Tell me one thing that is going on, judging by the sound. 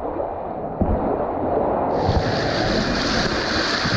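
Water sprays and splashes loudly against the hull.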